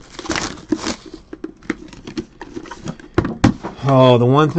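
A cardboard box is slid and tapped on a mat.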